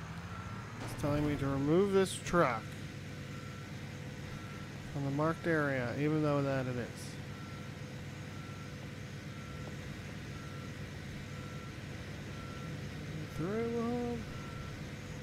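A truck engine revs up and down.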